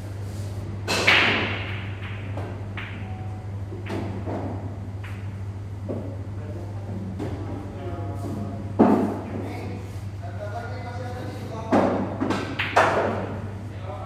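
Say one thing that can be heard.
Pool balls clack together sharply and echo slightly.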